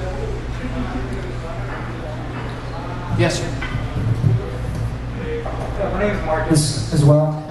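A middle-aged man speaks calmly into a microphone through a loudspeaker in an echoing room.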